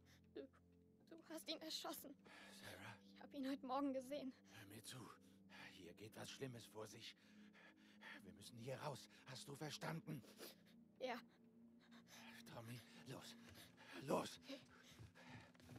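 A man speaks urgently and closely.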